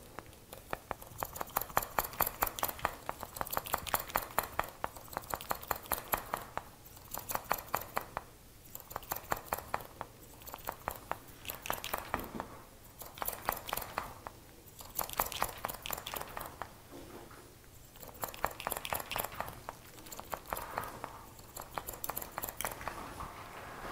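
Scissors snip rapidly through hair close by.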